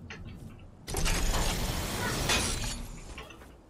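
A zipline whirs and rattles loudly.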